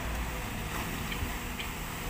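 Water splashes as a digger bucket drops into a river.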